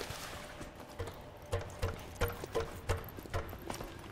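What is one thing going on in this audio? Footsteps clank on metal ladder rungs during a climb.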